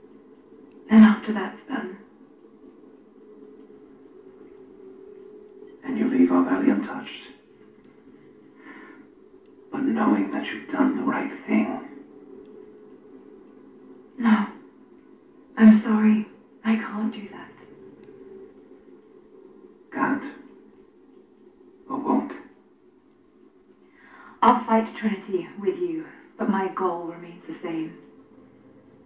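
A young woman speaks quietly and earnestly.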